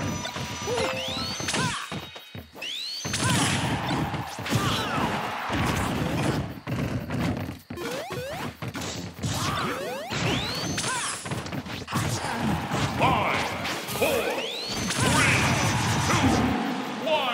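Energetic electronic game music plays throughout.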